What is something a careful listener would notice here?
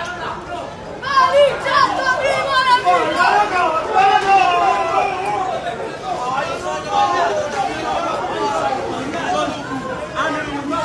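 A crowd of men shout and yell loudly outdoors.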